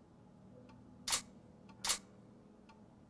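A pistol fires two sharp shots.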